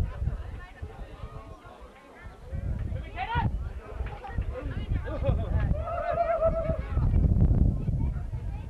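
Young children chatter and call out close by in a crowd.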